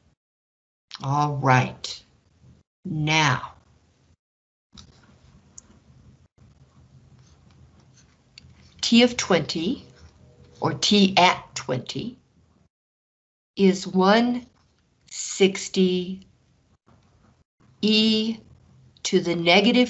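A man explains calmly, heard close through a microphone, with pauses between phrases.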